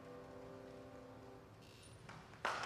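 A choir of young women sings a held chord in a hall.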